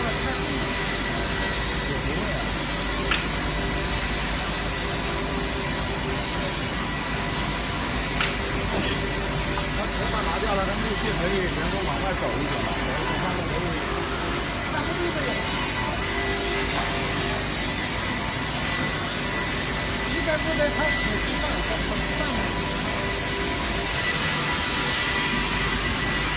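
A sawmill machine whirs and drones steadily.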